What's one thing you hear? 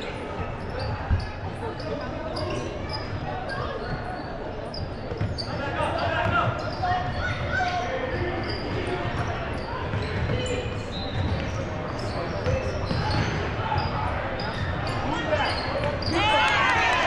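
Sneakers squeak sharply on a court in a large echoing gym.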